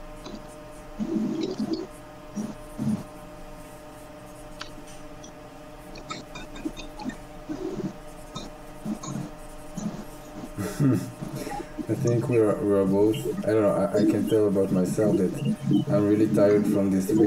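A man talks calmly over an online call.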